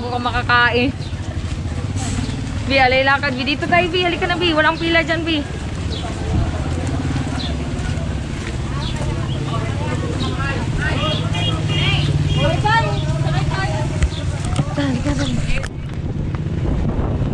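Several people chatter nearby outdoors.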